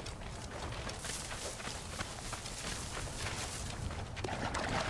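Tall grass rustles and swishes as something pushes through it.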